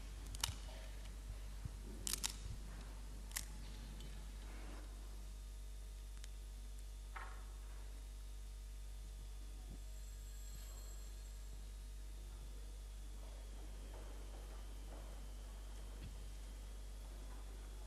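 A man prays quietly into a microphone.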